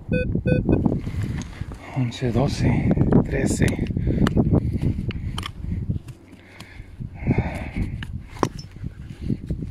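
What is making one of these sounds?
A digging tool scrapes and chops into soil.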